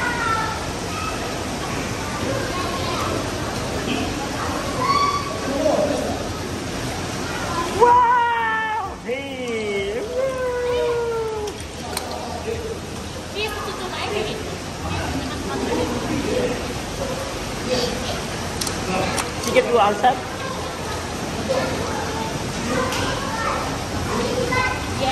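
Water splashes and trickles in a play table.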